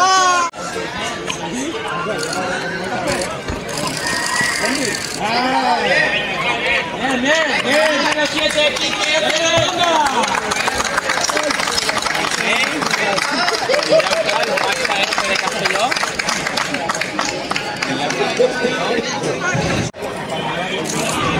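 A crowd of people shouts and cheers loudly outdoors.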